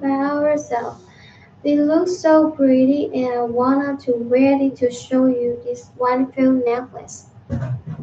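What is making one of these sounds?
A young woman speaks calmly and closely into a microphone.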